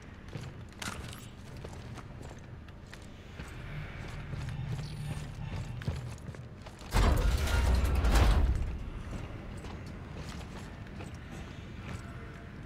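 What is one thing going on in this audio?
Heavy boots clank on a metal floor.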